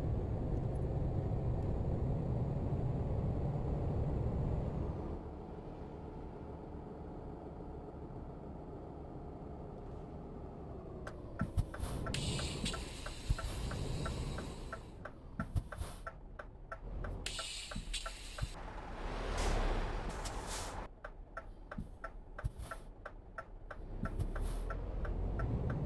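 A truck engine drones steadily as the truck drives along.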